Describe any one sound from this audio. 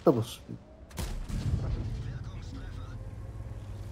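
A tank cannon fires with a heavy boom and a rumbling echo.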